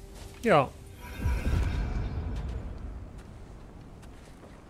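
A rushing, roaring whoosh swells and fades away.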